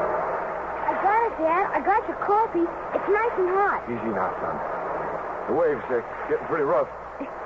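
A man reads out into a microphone, heard through an old radio broadcast.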